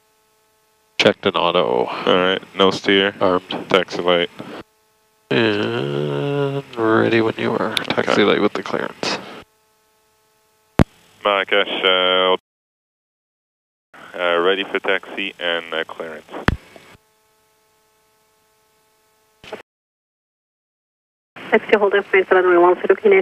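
A man speaks calmly over a radio headset.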